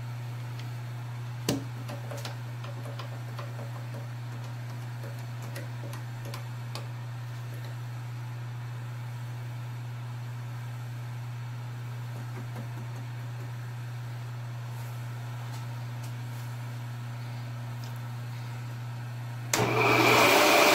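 A drill press motor hums steadily.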